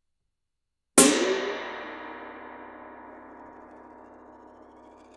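A drum is struck hard once, and a loud ringing slowly fades.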